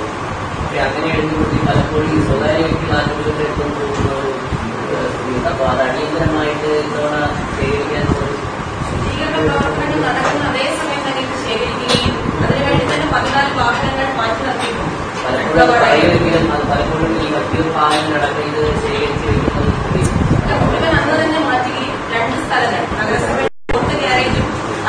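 A young woman speaks steadily and close up into microphones.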